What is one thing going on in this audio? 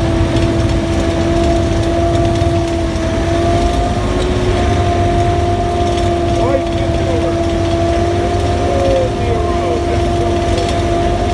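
Water rushes and splashes against a moving vehicle.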